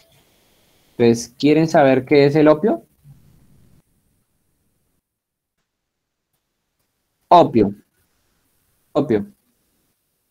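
A young man speaks briefly over an online call, in short bursts.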